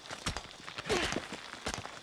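Hands and feet scrape on rock while climbing.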